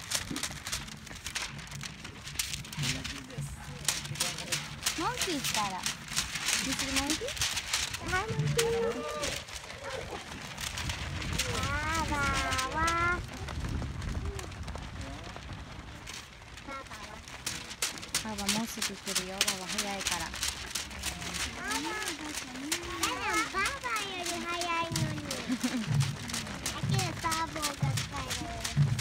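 Many runners' feet patter on asphalt close by.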